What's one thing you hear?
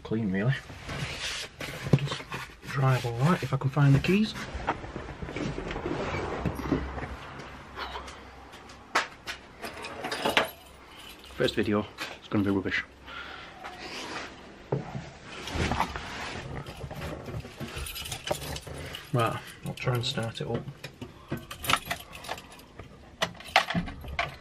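A middle-aged man talks close to the microphone, calmly and casually.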